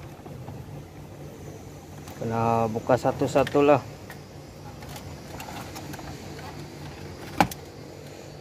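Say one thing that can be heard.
Plastic parts click and rattle as hands pull a car stereo unit out of a dashboard.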